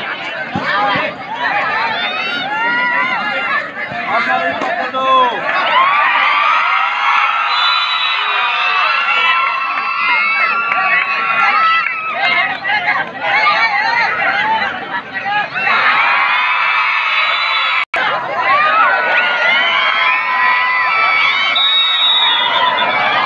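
A large crowd cheers and shouts loudly outdoors.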